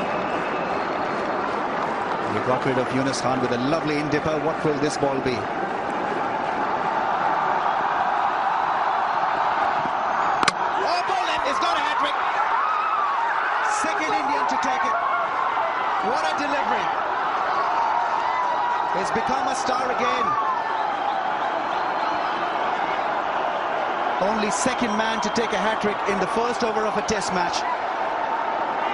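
A large crowd roars and cheers loudly outdoors.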